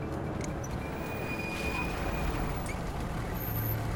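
Heavy trucks rumble in with engines running.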